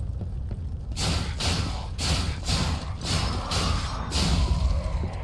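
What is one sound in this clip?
Metal blades clash and strike in quick blows.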